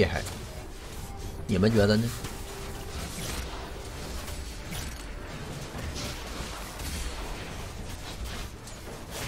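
Game effects clash and crackle.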